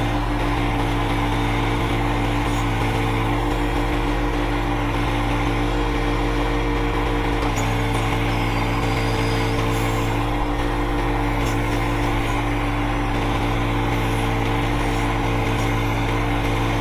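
A tractor engine runs steadily close by.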